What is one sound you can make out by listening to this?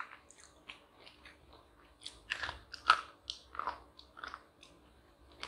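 A young woman crunches on a wafer.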